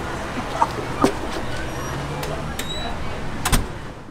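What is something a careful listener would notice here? A door swings shut with a thud.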